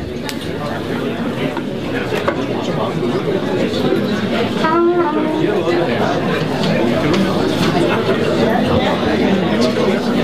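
A jazz big band plays a lively tune with brass and saxophones.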